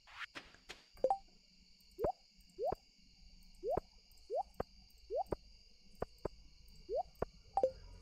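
Soft blips sound as items are picked in a menu.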